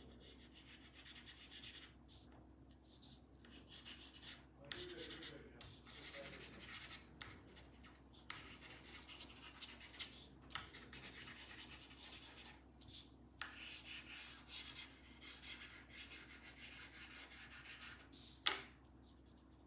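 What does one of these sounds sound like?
Pastel chalk scratches and rubs on paper, close by.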